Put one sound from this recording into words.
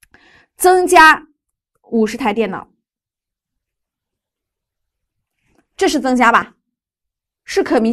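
A woman speaks clearly into a close microphone, in short phrases with pauses.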